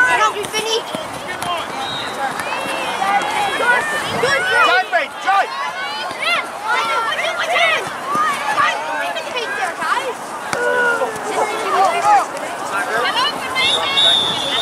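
Young players shout and call to each other from across an open field.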